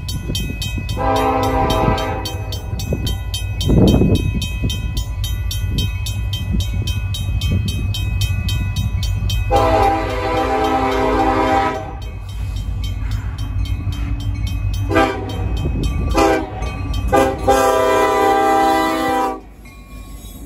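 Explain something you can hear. A train horn blares in loud, long blasts, drawing closer.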